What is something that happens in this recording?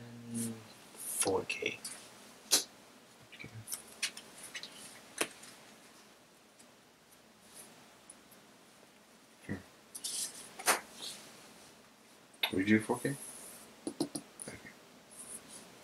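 Playing cards slide and tap softly on a mat.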